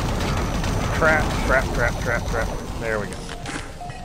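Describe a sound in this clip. A plasma gun fires rapid zapping shots.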